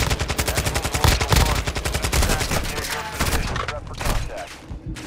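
Rapid gunfire rattles loudly and close by.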